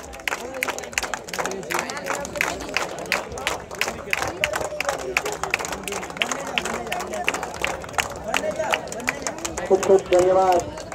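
People clap their hands rapidly.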